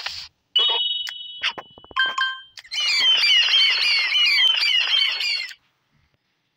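A cheerful chiming jingle plays.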